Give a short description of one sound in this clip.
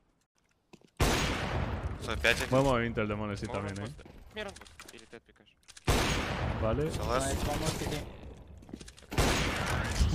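A sniper rifle fires loud shots.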